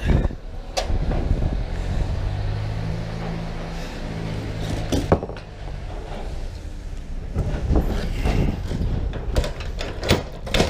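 Metal latches clank and knock on a truck's side.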